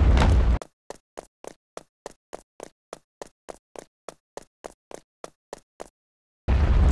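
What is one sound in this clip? Quick, light footsteps patter steadily on a hard floor.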